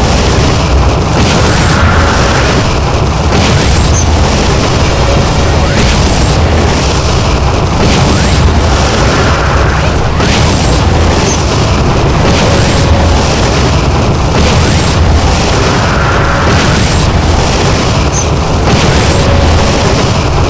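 An energy beam crackles and hums steadily.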